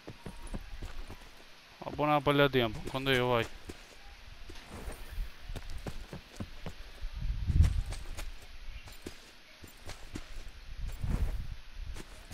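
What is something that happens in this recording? Footsteps rustle quickly through grass.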